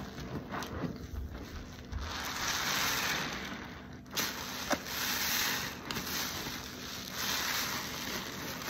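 A sponge squelches as it is squeezed in soapy water.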